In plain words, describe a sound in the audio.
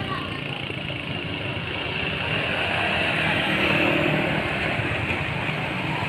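Motorbike engines hum as they ride past.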